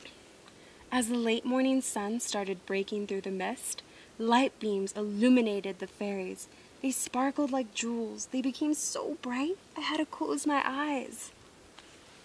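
A young woman reads aloud expressively, close by.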